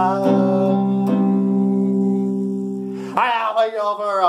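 An electric guitar strums a loud chord that rings out.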